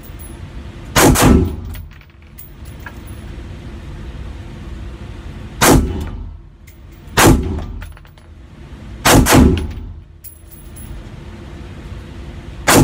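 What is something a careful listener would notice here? A suppressed rifle fires loud, sharp shots that echo briefly in an enclosed room.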